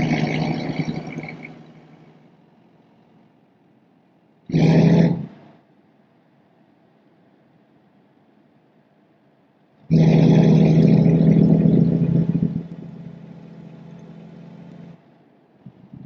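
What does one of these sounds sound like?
A truck engine rumbles and revs.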